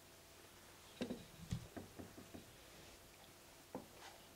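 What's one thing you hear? A man shifts about in his seat with soft bumps and knocks.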